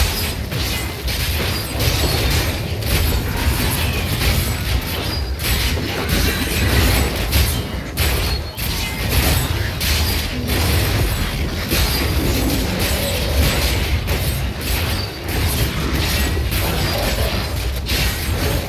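Spell effects crackle and burst over and over in quick succession.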